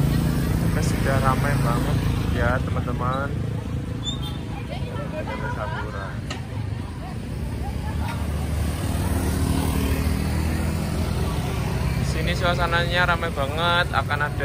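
A crowd of women and children chatter outdoors.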